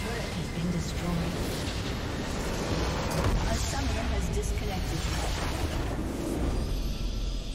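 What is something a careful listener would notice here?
Game spell effects crash and burst loudly.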